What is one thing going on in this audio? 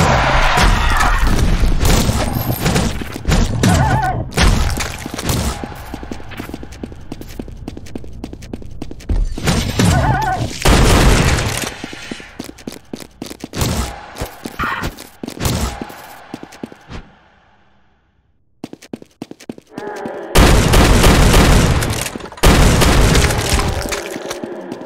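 A blade slashes and strikes creatures.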